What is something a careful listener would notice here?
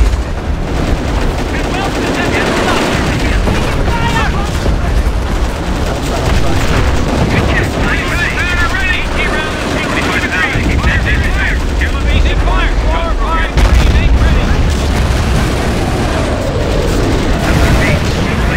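Gunfire rattles in bursts throughout.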